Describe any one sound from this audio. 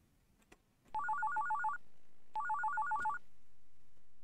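An electronic telephone rings in short warbling bursts.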